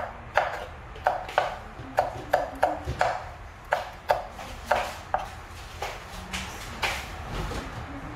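A knife chops rapidly on a wooden board.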